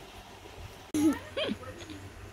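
A baby laughs and squeals.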